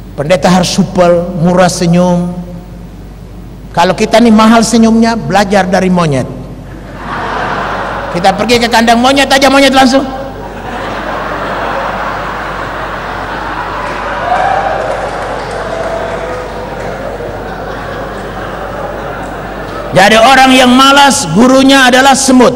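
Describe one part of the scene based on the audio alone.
A middle-aged man speaks with animation through a microphone and loudspeakers.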